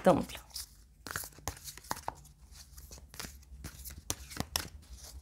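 Playing cards shuffle and tap together close up.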